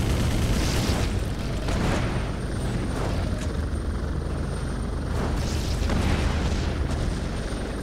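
A helicopter's rotor drones steadily overhead.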